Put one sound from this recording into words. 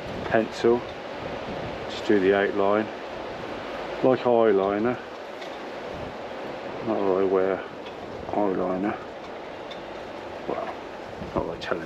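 A knife shaves and scrapes wood in short strokes.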